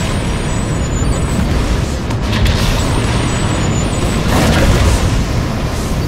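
A deep, steady rumbling roar of fire and battle fills the air.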